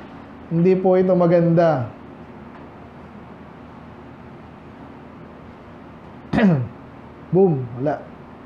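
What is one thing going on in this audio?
A man preaches with emphasis through a microphone in an echoing room.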